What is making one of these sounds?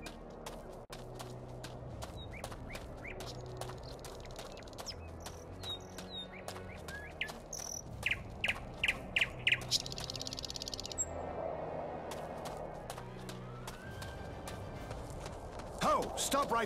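Armoured footsteps crunch steadily along a dirt path.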